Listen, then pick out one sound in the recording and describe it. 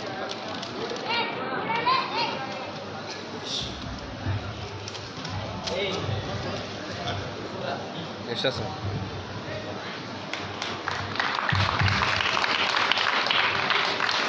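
Several men talk nearby in a murmuring crowd.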